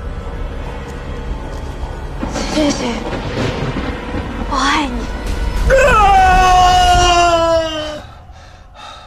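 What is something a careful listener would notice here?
A young woman speaks softly and emotionally, close by.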